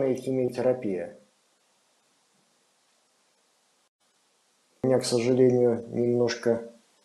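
A man speaks calmly into a microphone, with a long pause.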